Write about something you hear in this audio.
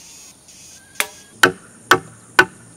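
A wooden mallet knocks on a chisel in sharp, steady blows.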